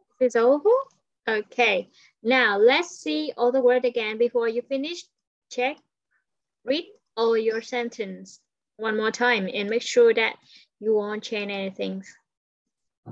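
A young woman speaks clearly and with animation over an online call.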